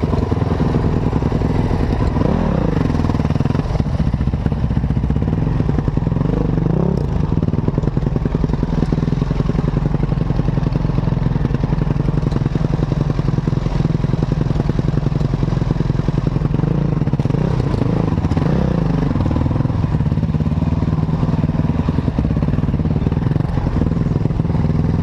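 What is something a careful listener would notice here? A dirt bike engine buzzes loudly up close, revving up and down.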